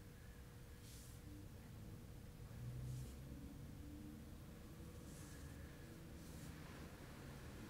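A man breathes out slowly and deeply.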